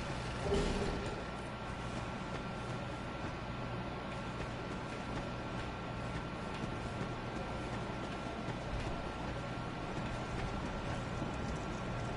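Footsteps crunch through grass and dirt.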